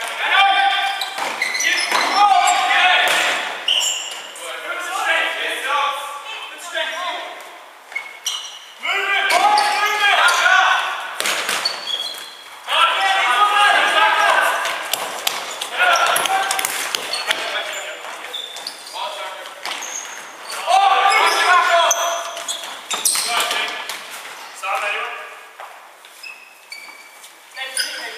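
A ball thumps as it is kicked and bounces on a wooden floor.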